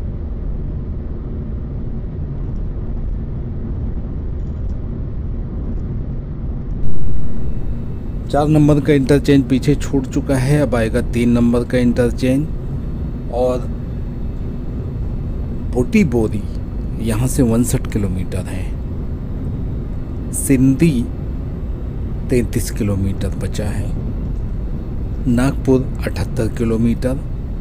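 A car engine hums and tyres roar steadily on a smooth road.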